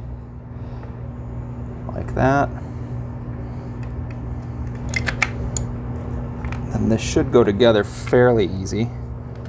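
Plastic parts click and rattle as a tool casing is pulled apart by hand.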